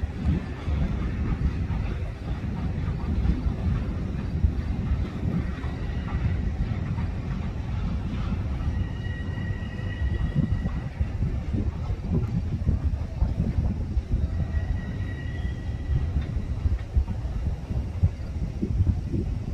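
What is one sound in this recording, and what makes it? A train rumbles steadily on its tracks as it approaches.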